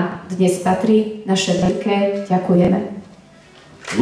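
A woman speaks calmly into a microphone, heard through loudspeakers in a large hall.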